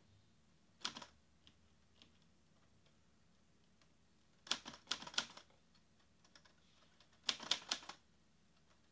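Fingers tap quickly on a laptop keyboard in short bursts.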